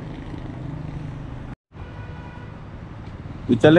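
A motorcycle passes along a street.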